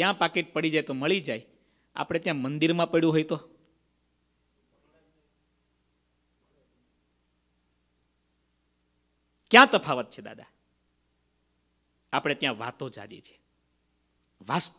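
A middle-aged man speaks calmly into a close microphone, with long pauses.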